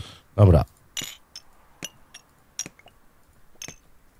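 Glasses clink as they are set onto a tray.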